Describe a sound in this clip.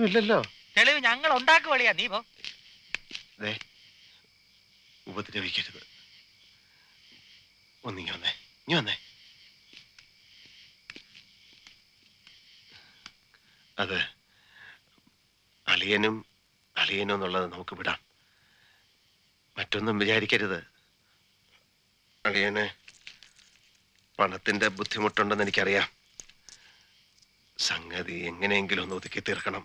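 A second man answers in a lower voice, close by.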